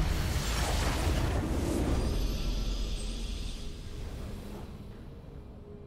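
A triumphant game victory sound swells and slowly fades.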